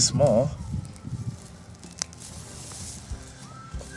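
Roots snap as a weed is pulled out of the ground.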